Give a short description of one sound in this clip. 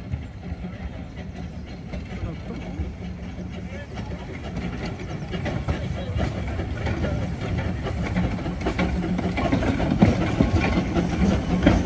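Train wheels clank and rumble over the rails.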